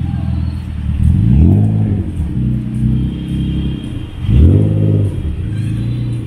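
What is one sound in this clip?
A sports car engine revs sharply and drops back.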